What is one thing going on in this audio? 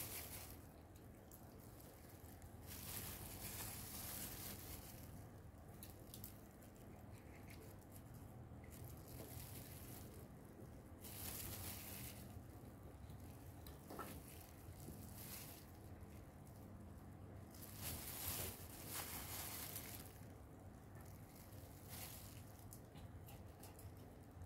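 Plastic gloves crinkle and rustle close by.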